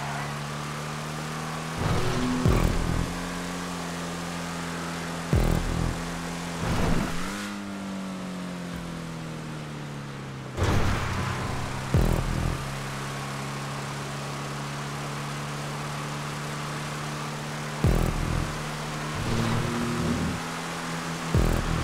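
A race car engine drones steadily at high revs, dipping briefly in pitch.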